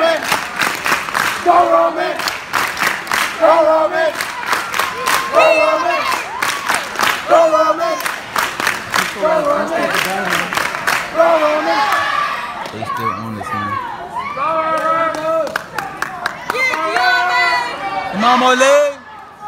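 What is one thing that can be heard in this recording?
A large group of young people chants loudly in unison in an echoing hall.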